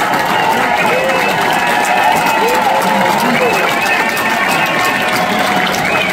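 A large crowd cheers and screams loudly in a big echoing hall.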